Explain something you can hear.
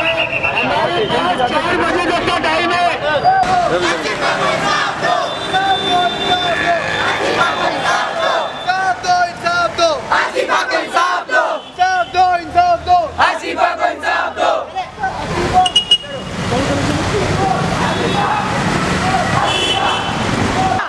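A crowd of young men chants slogans loudly outdoors.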